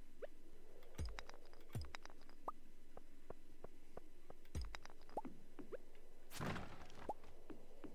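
Rocks crack and break with sharp thuds.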